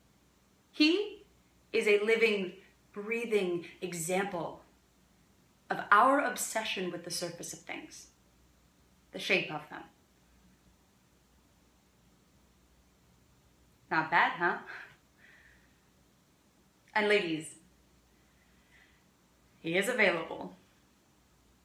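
A young woman speaks calmly and expressively close by, in short phrases with pauses.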